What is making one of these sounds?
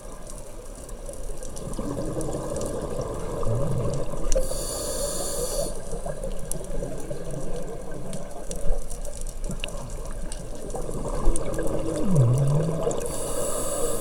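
Scuba bubbles gurgle and rumble underwater as divers exhale.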